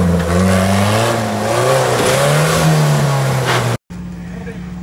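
An off-road engine revs hard, rising and falling.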